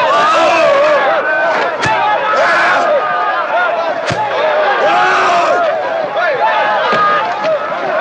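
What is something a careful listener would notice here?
A middle-aged man groans and cries out in pain.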